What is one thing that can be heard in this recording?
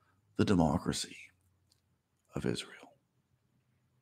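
A middle-aged man speaks calmly and close to the microphone in two short phrases.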